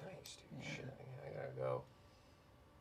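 A man speaks briefly through a microphone, with animation.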